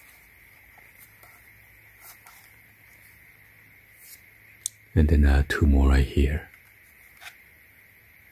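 Plastic parts click and rattle as they are handled up close.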